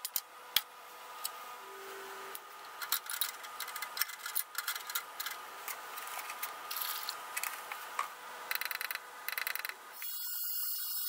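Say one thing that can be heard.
Metal parts clink and rattle in a wire basket.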